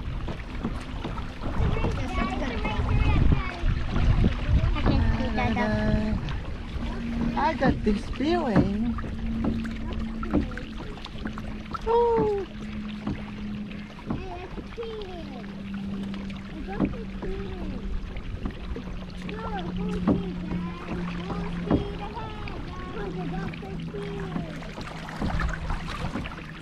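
Water splashes and laps against a kayak's hull.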